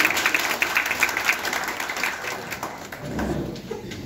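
Applause rings out briefly.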